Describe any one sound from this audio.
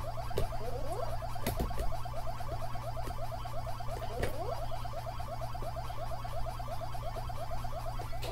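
A video game's chomping sound effect repeats quickly and steadily from a television speaker.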